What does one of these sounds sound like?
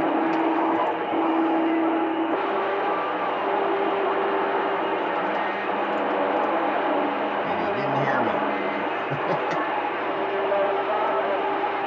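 A radio receiver hisses with loud, steady static.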